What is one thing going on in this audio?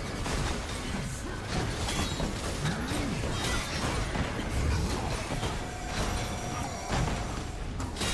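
Explosions boom and roar.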